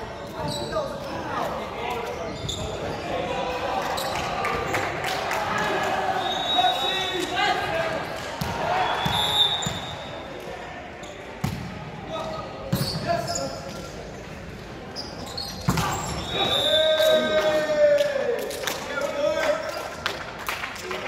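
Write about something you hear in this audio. Shoes squeak sharply on a gym floor.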